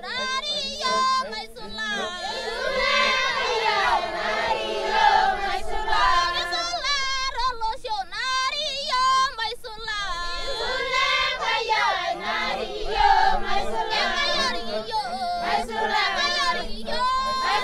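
A group of women sing together in loud chorus outdoors.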